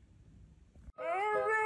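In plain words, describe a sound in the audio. A cat meows loudly.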